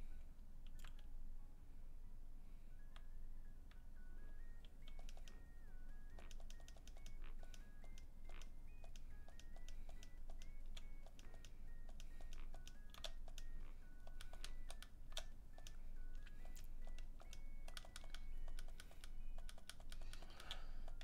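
Short menu blips tick quickly as options are chosen.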